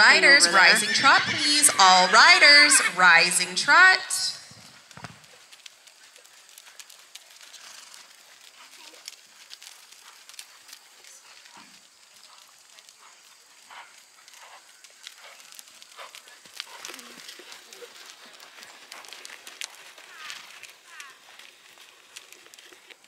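Horses' hooves thud softly on dirt as they walk.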